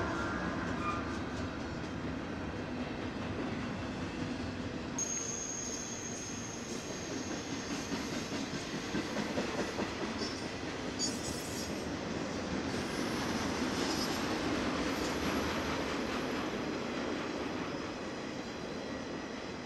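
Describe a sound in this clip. A long freight train rumbles steadily past nearby.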